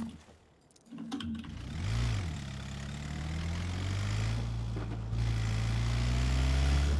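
A van engine starts and revs, rising in pitch.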